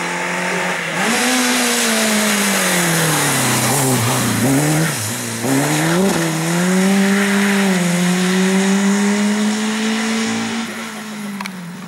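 Tyres hiss on a wet road as a car speeds past.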